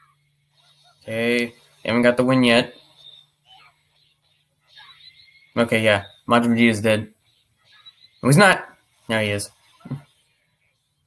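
A young man speaks close to a microphone in short bursts, with animation.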